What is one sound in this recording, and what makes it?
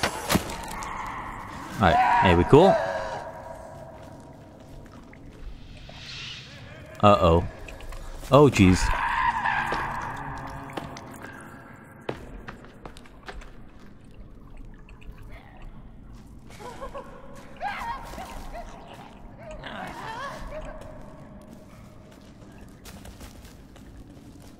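A creature shrieks and snarls close by.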